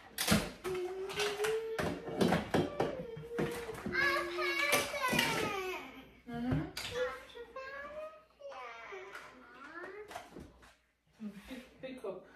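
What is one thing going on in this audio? Plastic toys clatter as they are sorted in a bin.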